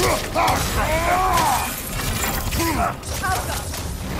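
A magic blast crackles and whooshes.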